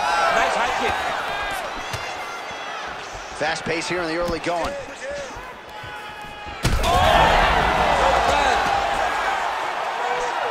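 Punches and kicks land with dull thuds.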